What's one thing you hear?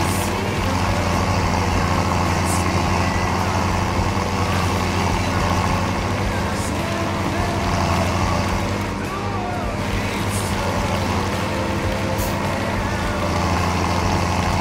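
A trailer rattles over a bumpy dirt track.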